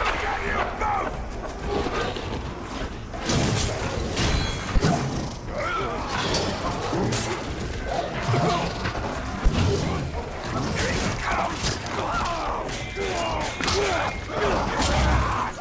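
Gruff creatures grunt and shout during the fight.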